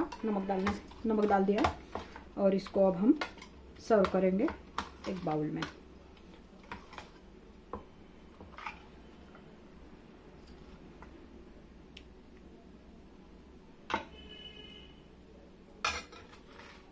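A spoon scrapes and clinks against a metal bowl.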